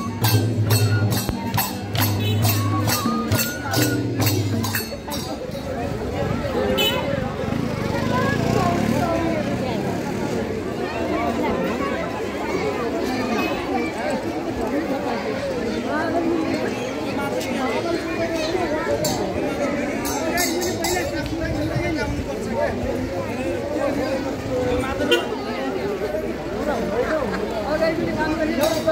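Drums beat and cymbals clash in a lively rhythm.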